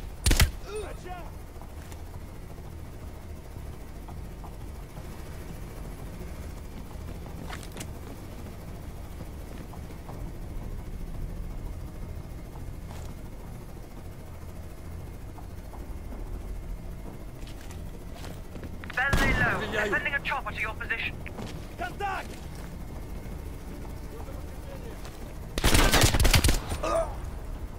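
A rifle fires gunshots.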